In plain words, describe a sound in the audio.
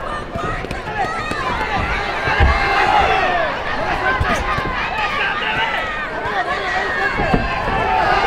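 Boxing gloves thud against a body in quick punches.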